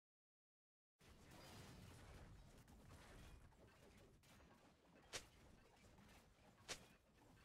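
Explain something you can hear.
Game characters clash in battle with spell effects.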